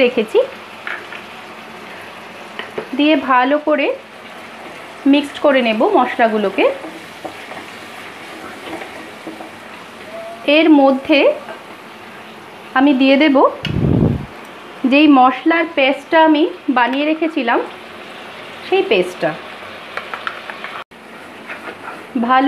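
Oil sizzles and bubbles in a hot pan.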